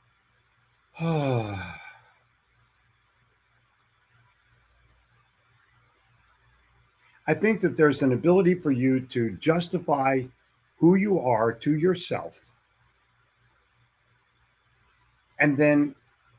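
An older man speaks with animation into a close microphone, with pauses.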